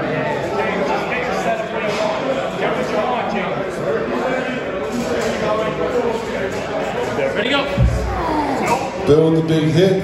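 A man talks loudly and clearly close by.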